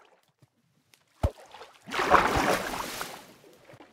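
A wooden boat is struck and breaks apart with a crunch.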